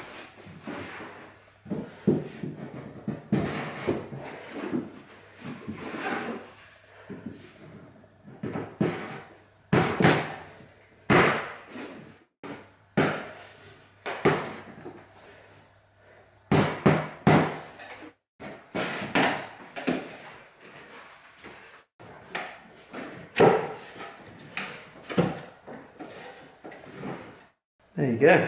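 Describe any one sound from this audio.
MDF panels knock and scrape as they are slotted together on a wooden floor.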